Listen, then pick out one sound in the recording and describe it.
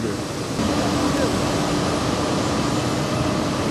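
A large machine hums and rumbles steadily.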